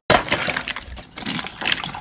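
Water pours into a plastic jug.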